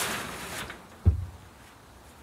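A wooden board knocks against a wooden wall.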